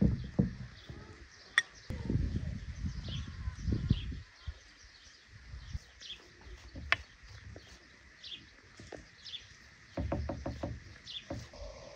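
A pastry brush dabs and swishes softly on a pastry.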